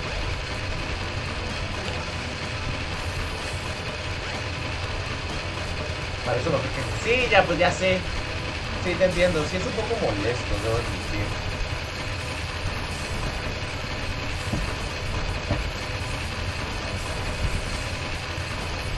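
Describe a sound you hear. Upbeat video game music plays steadily.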